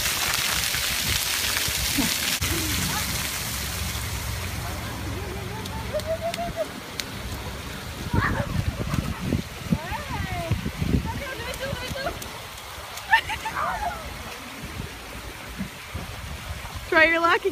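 Water jets splash and hiss from a fountain.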